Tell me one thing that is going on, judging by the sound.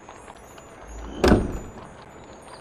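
A heavy wooden chest lid thuds open.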